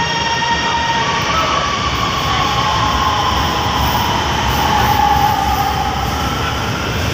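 A train's motors whine steadily as the train speeds up.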